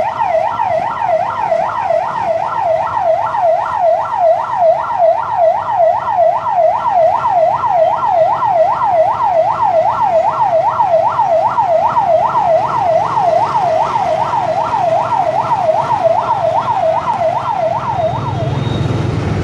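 An ambulance siren wails rapidly up and down close by.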